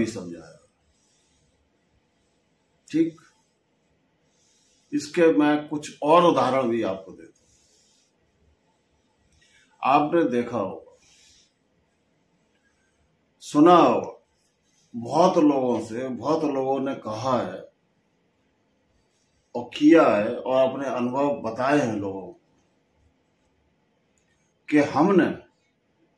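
An elderly man speaks slowly and calmly close by, in short phrases with long pauses.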